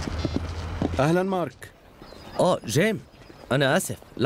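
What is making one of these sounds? A man speaks on a phone nearby.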